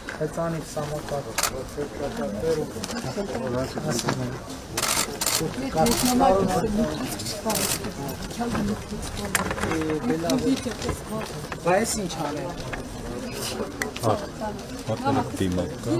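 Several men talk at once in the background.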